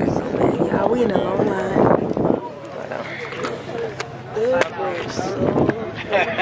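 Several young people talk and chatter close by.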